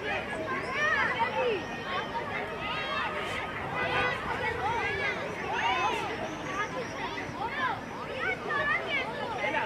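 Children shout and call out in the distance across an open field.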